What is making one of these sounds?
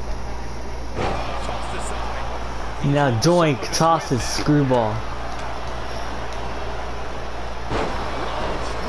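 A body slams hard onto a wrestling mat with a thud.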